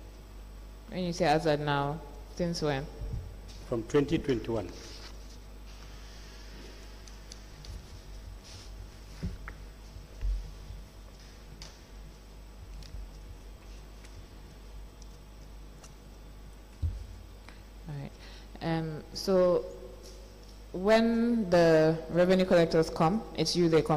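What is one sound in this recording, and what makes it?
A woman speaks firmly into a microphone in pauses.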